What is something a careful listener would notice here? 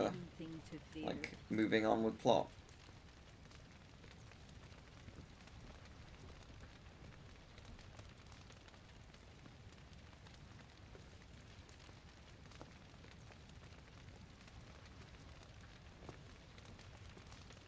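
A bonfire crackles steadily.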